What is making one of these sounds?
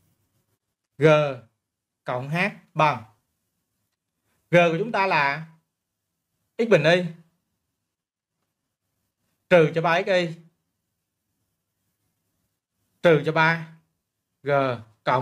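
A young man speaks calmly through a microphone, in short phrases with pauses.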